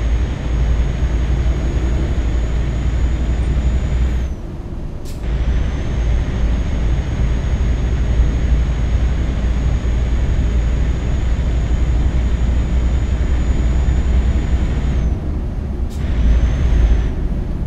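A truck engine drones steadily at speed, briefly easing off twice.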